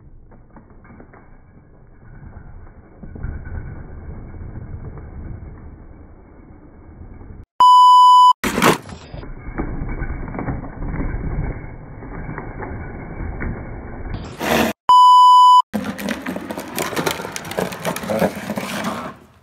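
Plastic wheels scrape and rumble across asphalt.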